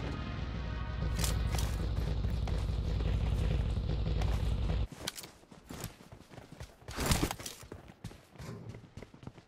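Footsteps run quickly over dirt and concrete.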